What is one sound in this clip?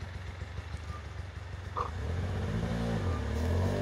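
An animal rustles through dry leaves on the forest floor.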